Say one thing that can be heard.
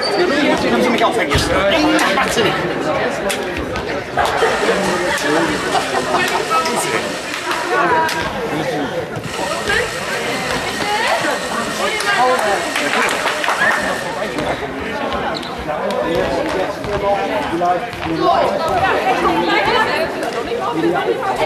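Hands slap together in high-fives.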